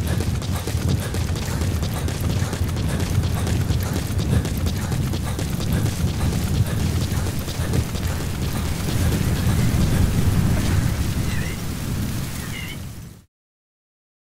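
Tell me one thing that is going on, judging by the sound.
Strong wind blows and rumbles steadily.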